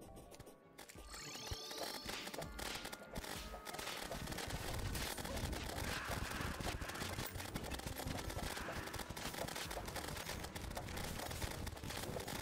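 Rapid game shots and small explosions crackle and pop without pause.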